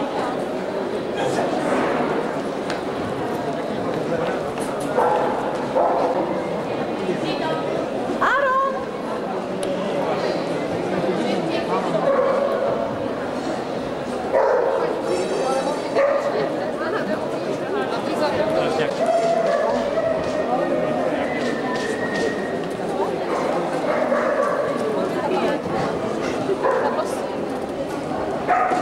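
A crowd of men and women murmurs and chatters in a large echoing hall.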